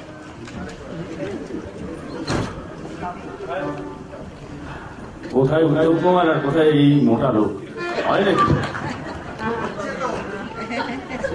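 A band plays music on stage.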